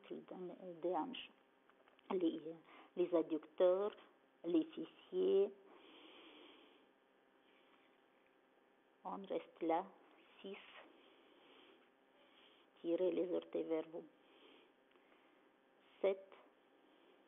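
A woman speaks calmly, giving instructions in short phrases.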